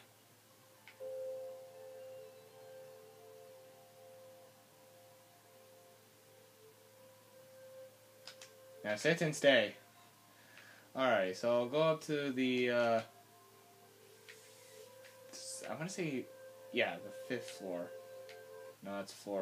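Soft music plays from a television.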